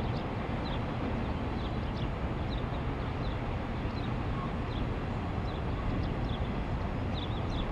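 A freight train rumbles steadily in the distance.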